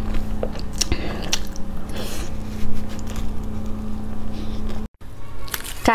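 A woman bites and chews meat from a skewer close to a microphone.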